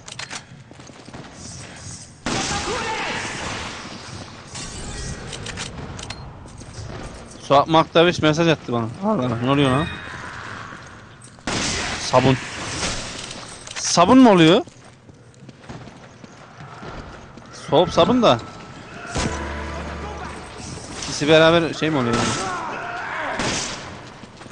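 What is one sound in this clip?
Handgun shots ring out.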